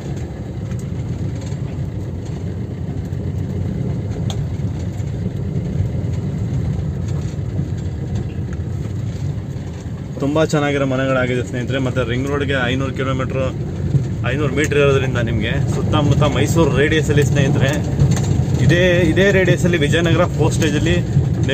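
A car engine hums steadily with tyres rumbling over a rough road.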